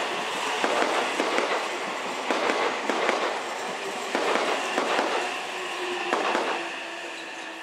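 A train passes close by, its wheels clattering loudly over rail joints.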